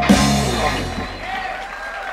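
A rock band plays a loud chord that rings out and fades.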